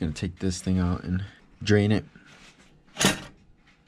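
A cloth rubs and rustles against a metal pipe.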